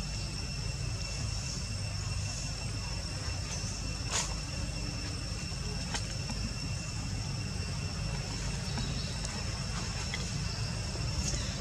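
A baby monkey suckles with soft smacking sounds.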